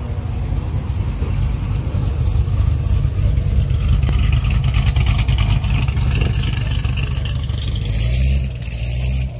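A sports car engine idles with a deep, loud rumble close by.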